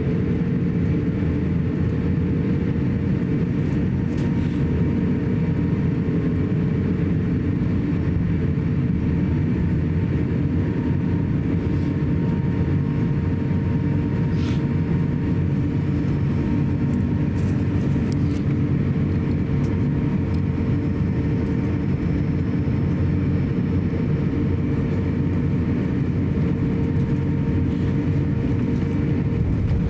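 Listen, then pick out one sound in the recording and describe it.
An airliner's wheels rumble over the taxiway.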